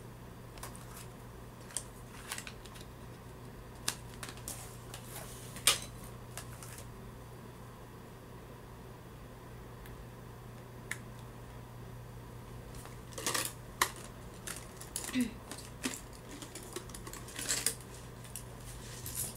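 Fabric rustles and brushes close by in short bursts.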